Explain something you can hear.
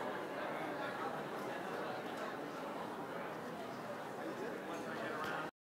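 A crowd of men and women chatter all at once in a room.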